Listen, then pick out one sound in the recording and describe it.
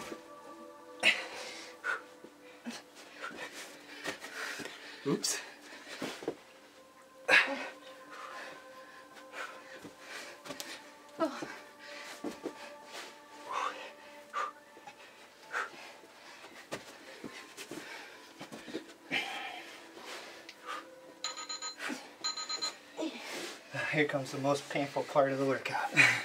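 Feet thump on a carpeted floor as people jump and drop down.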